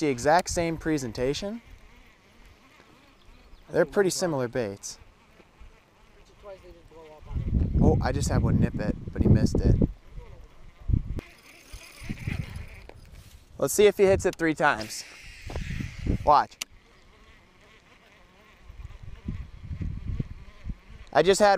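A fishing reel whirs as line is reeled in.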